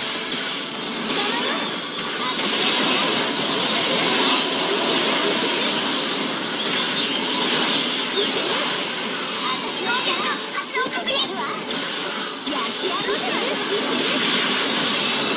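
Game spell effects and explosions crackle and boom continuously.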